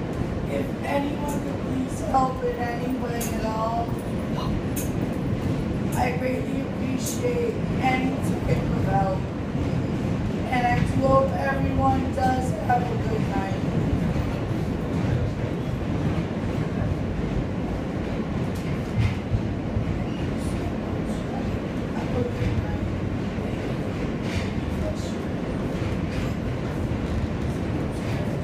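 A subway train rumbles and clatters along the track, heard from inside the car.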